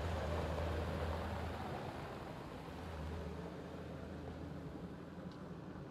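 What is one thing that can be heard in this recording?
A vehicle drives past on a gravel road and fades into the distance.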